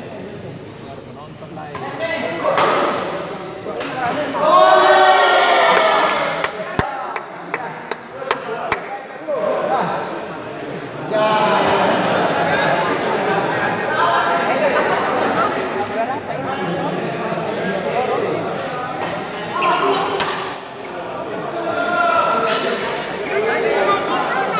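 A shuttlecock is struck sharply with a racket, again and again.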